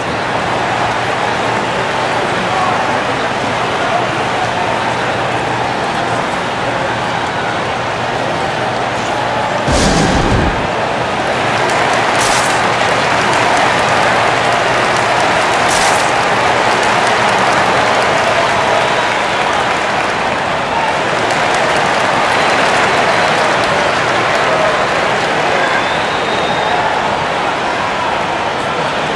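A large crowd murmurs and chatters steadily in a big echoing arena.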